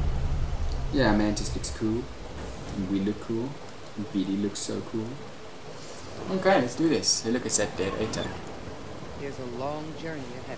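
A young man talks animatedly close to a microphone.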